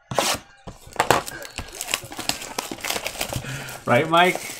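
Plastic wrap crinkles and rustles close by.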